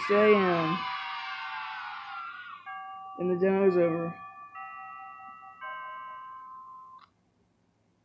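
A bright chime rings out and slowly fades.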